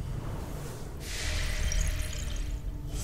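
A glittering energy effect hisses and shimmers.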